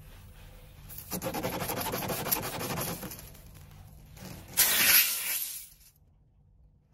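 A metal tool rasps and grinds as it is forced into a tyre.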